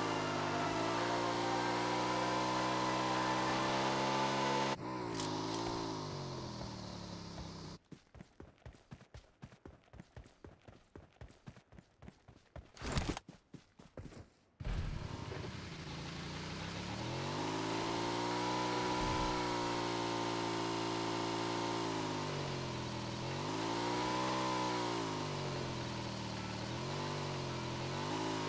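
A motorbike engine hums steadily and revs up and down.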